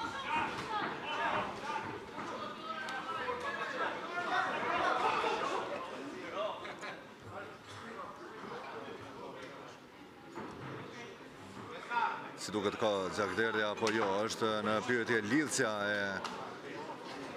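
A crowd chatters and calls out in an echoing hall.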